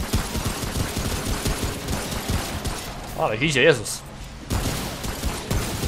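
A pistol fires loud shots that echo.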